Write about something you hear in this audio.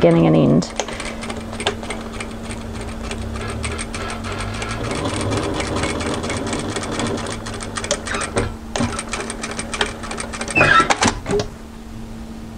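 A sewing machine stitches with a rapid steady clatter.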